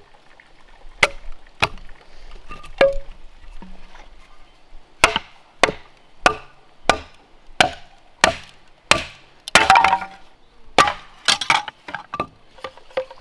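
A machete chops into bamboo with sharp, hollow knocks.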